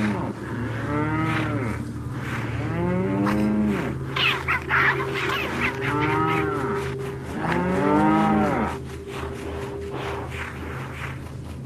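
A chicken clucks.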